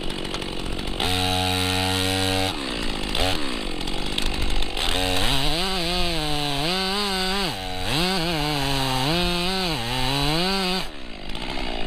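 A chainsaw engine runs close by, revving up and down.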